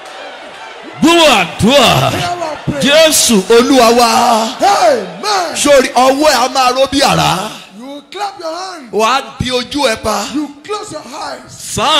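A man speaks forcefully through a loudspeaker in an echoing hall.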